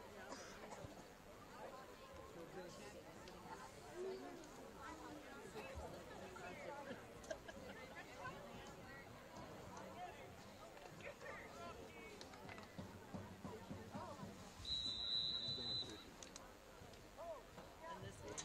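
A crowd of spectators chatters and calls out across an open field.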